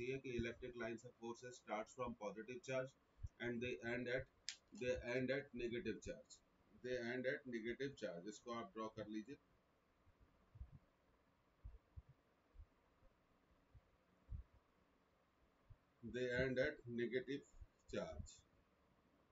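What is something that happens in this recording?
A middle-aged man speaks calmly and explains into a microphone, with pauses.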